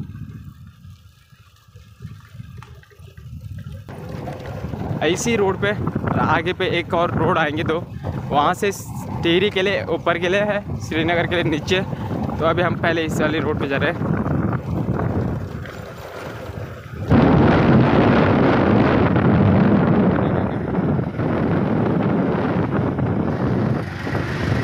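A motorbike engine runs steadily while riding along a road.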